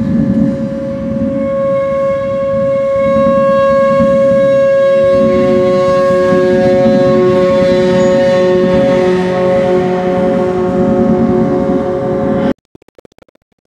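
A bow scrapes across the edge of a large gong, drawing out steady, ringing, humming tones.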